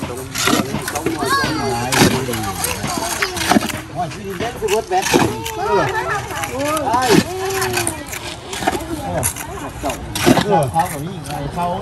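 Trowels scrape and tap on concrete blocks.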